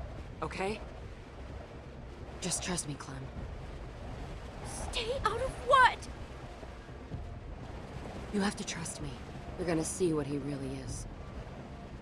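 A young woman speaks urgently and pleadingly, close by.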